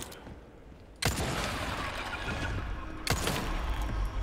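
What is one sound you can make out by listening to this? A pistol fires twice, with a ringing echo.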